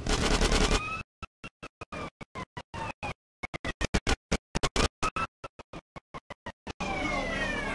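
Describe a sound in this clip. A police siren wails close by.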